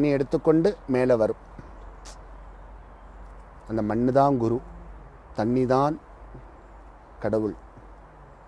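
A man speaks calmly and slowly into a close microphone, in short phrases with pauses.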